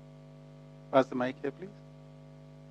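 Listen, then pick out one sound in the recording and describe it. A man speaks briefly through a microphone.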